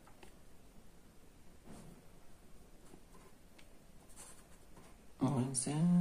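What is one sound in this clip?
A felt-tip marker writes on paper.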